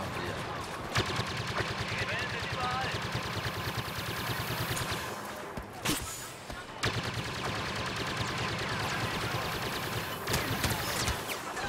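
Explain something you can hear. Blaster guns fire in sharp bursts.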